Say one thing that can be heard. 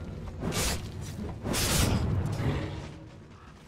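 Magic blasts whoosh and crash in a fight.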